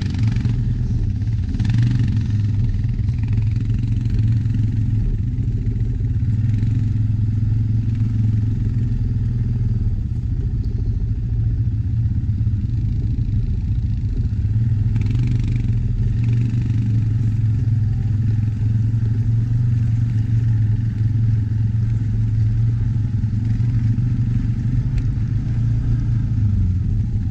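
An all-terrain vehicle engine rumbles steadily close by.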